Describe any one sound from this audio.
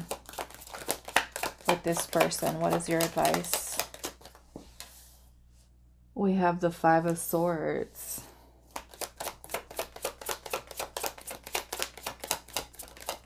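A deck of cards is shuffled with rapid flicking and clicking.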